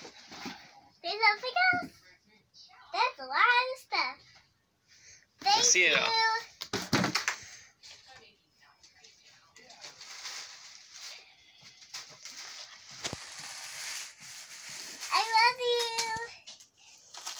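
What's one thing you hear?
A young girl talks with excitement close by.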